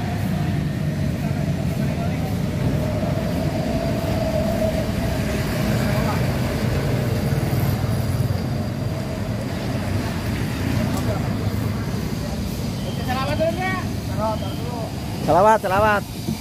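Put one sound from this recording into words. Traffic rumbles steadily on a nearby street.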